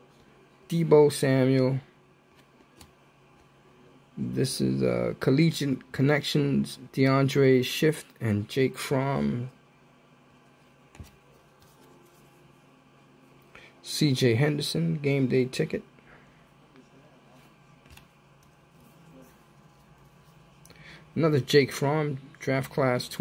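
Trading cards slide and rustle against each other in a person's hands.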